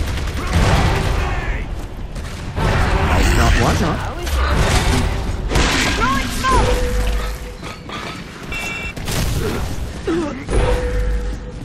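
Heavy boots thud and armour clanks as a soldier runs.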